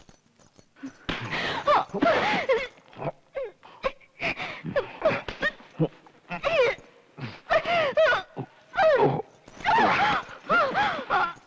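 A woman cries and wails in distress.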